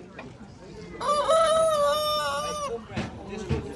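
A rooster crows loudly nearby.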